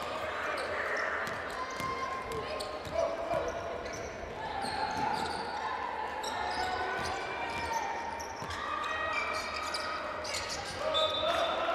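A basketball bounces on the court in quick dribbles.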